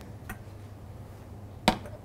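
A metal pot clanks on a cooktop.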